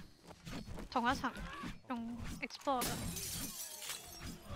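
A game character groans and snarls close by.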